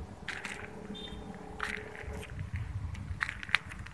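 A cat rustles through grass.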